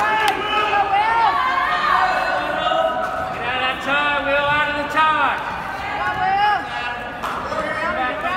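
Shoes squeak on the mat.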